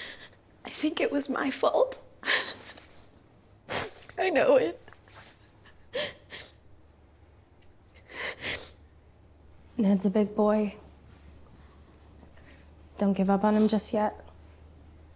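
A young woman sobs and speaks through tears close by.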